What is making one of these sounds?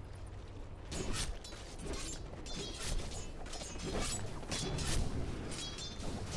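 Weapons clash in combat.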